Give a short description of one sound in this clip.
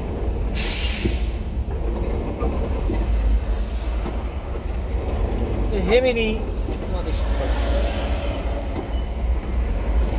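A truck engine idles with a low steady rumble close by.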